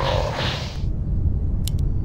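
A lightning bolt crackles.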